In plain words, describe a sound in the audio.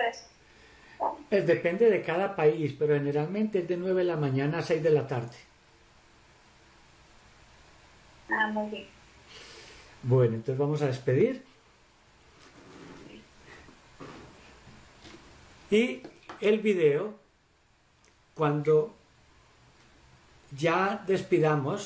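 A middle-aged man speaks calmly over an online call, in bursts with pauses.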